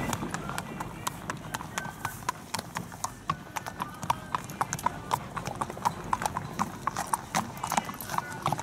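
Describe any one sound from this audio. A horse's hooves clop on hard ground as it is led past.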